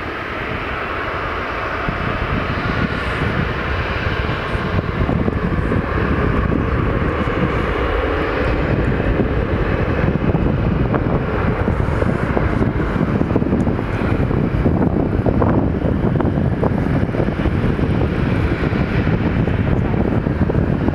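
A twin-engine jet airliner taxis, its engines whining and rumbling.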